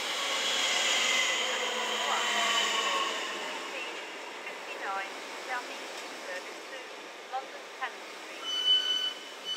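An electric train rolls slowly past with a whining motor hum that fades away.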